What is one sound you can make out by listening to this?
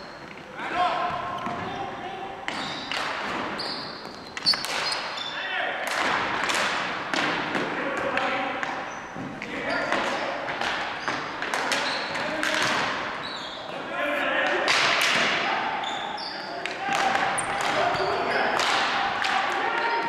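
Players' shoes squeak on a hardwood floor.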